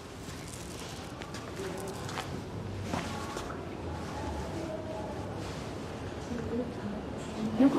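An elderly woman talks calmly.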